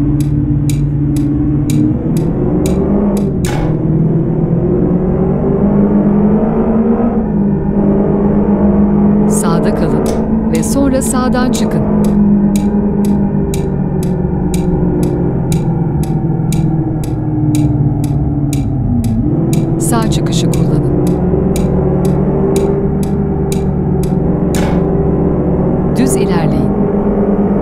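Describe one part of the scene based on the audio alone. A car engine hums steadily and changes pitch as the car speeds up and shifts gears.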